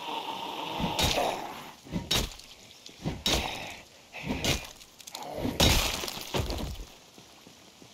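A heavy blunt weapon strikes a body again and again with dull thuds.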